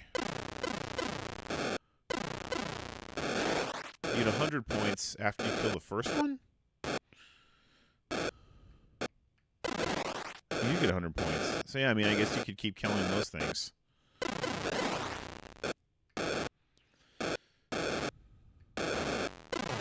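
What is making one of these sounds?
Electronic video game tones beep and buzz.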